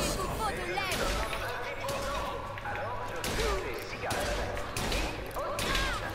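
Loud gunshots ring out, one after another.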